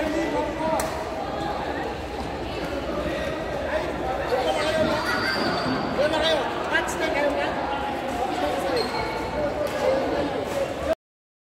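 A badminton racket hits a shuttlecock with sharp pops.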